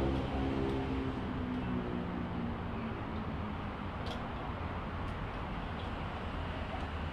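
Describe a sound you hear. Plastic parts click and rattle softly as they are handled.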